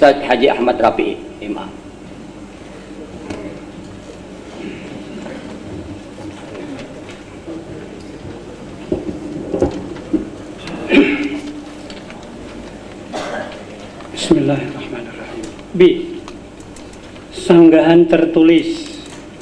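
Men's voices recite aloud in short bursts.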